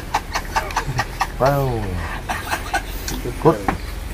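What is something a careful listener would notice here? A man laughs and talks from a short distance.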